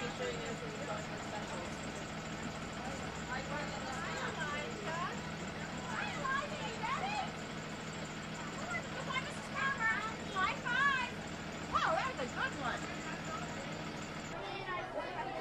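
Children chatter and call out excitedly.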